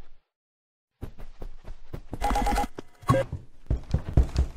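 Footsteps run quickly across a wooden floor.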